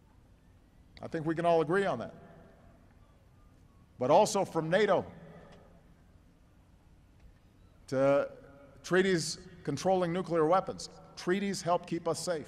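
A man speaks calmly and deliberately into a microphone, with long pauses.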